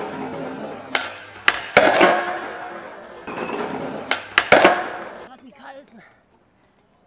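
Skateboard wheels roll and rumble over pavement.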